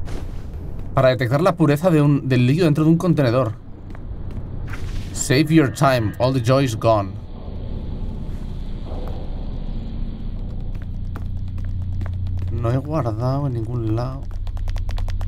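A man talks into a microphone with animation, close up.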